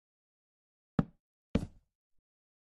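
A wooden block is set down with a thud.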